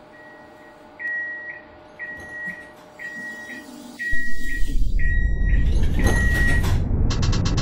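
A warning signal beeps repeatedly inside a tram cab.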